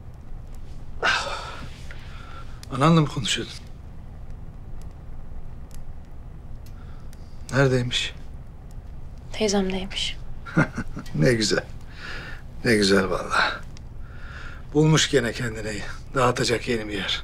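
A middle-aged man speaks with intensity.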